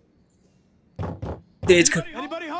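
A fist knocks on a door.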